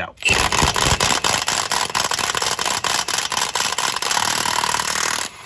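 An impact wrench hammers rapidly on a wheel nut.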